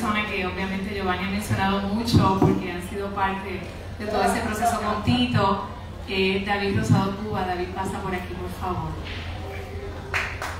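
A woman speaks calmly through a loudspeaker in a room.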